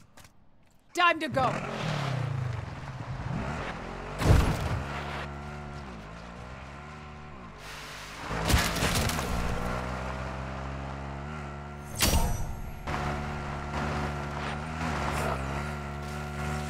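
A quad bike engine starts and revs up and down as it drives.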